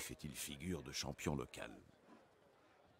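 A man speaks calmly through a speaker.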